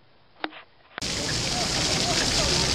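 Water spurts up from a jet and splashes onto paving.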